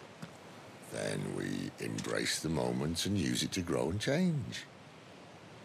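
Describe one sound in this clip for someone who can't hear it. A man speaks calmly and low.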